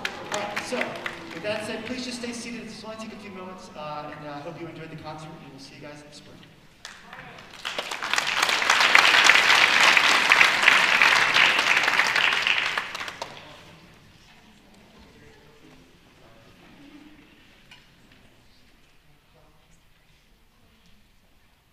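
An orchestra plays music in a large hall.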